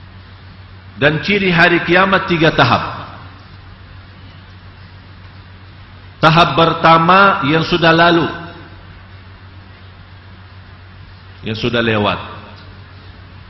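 A man speaks into a microphone with emphasis, in short bursts separated by pauses, with a slight room echo.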